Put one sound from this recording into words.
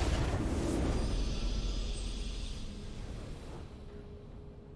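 A triumphant game fanfare swells and fades away.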